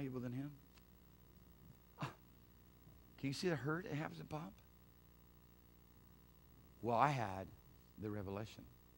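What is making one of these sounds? A middle-aged man speaks to an audience through a microphone, in short bursts with pauses.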